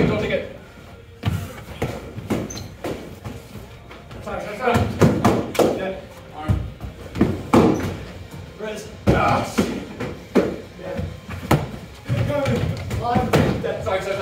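Padded foam swords thump against shields and each other.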